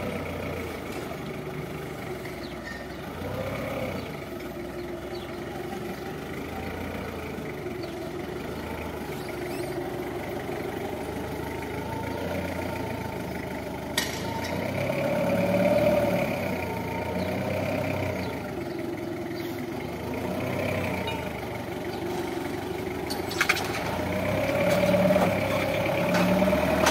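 A forklift engine hums and revs up and down close by.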